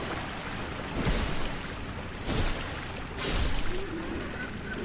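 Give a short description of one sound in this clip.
Heavy blows strike with dull thuds.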